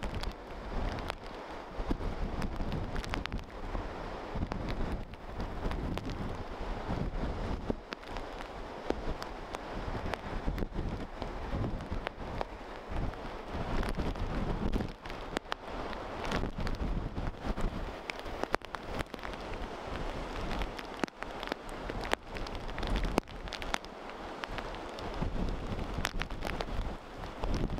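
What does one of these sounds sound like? Heavy surf crashes and roars against rocks.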